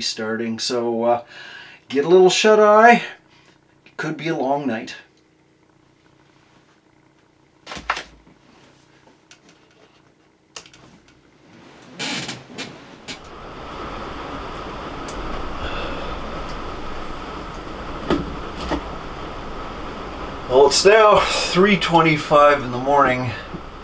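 An elderly man talks quietly nearby.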